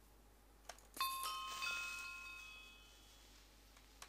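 A chime rings out brightly.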